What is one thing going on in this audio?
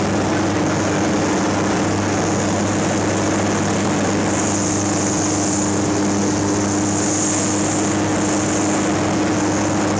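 A small propeller plane's engine drones loudly and steadily.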